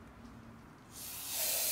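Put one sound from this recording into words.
An aerosol can sprays with a sharp hiss.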